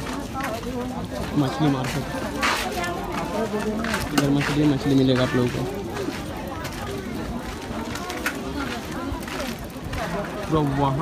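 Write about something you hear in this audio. Men and women talk loudly all around in a busy outdoor crowd.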